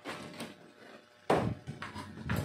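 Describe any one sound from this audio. A wooden board knocks against a bench.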